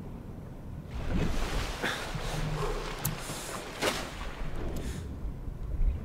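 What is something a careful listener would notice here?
Water splashes and churns.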